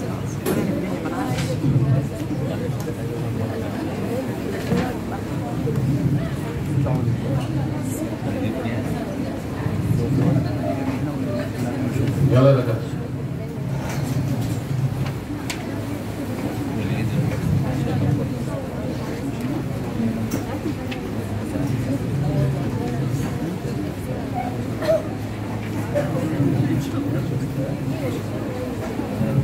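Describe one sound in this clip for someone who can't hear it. A man lectures steadily in a room with slight echo.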